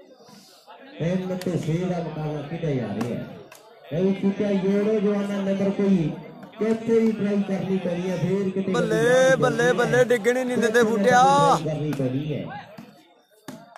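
Men in a crowd shout and cheer loudly outdoors.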